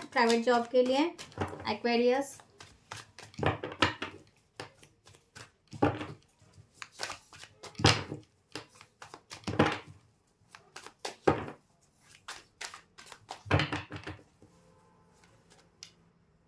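Playing cards shuffle and snap together.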